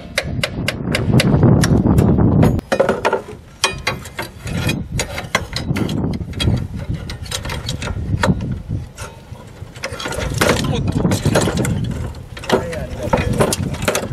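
Metal tools clank and scrape on machine parts.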